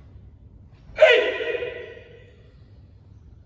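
A man lets out a sharp, loud shout that echoes through a large hall.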